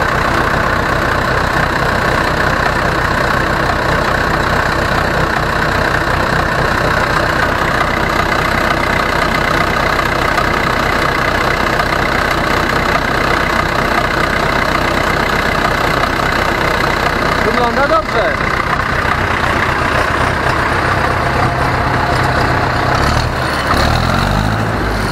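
A tractor's diesel engine runs loudly and steadily close by.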